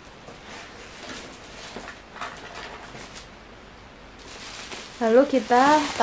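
Bubble wrap rustles softly as it is moved.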